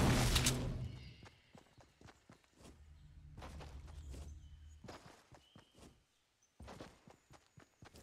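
Footsteps patter quickly over grass and dirt.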